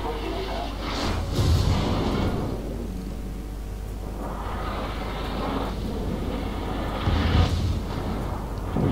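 Heavy naval guns boom in loud bursts.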